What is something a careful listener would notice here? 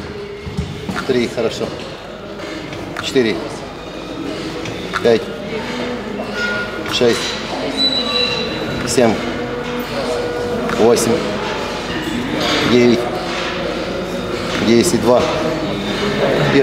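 A weight machine squeaks and creaks with each slow repetition.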